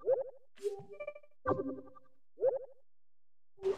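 Short electronic blips sound as a menu opens.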